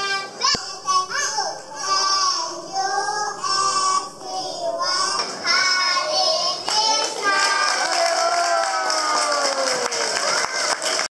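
A group of young children sing together through microphones.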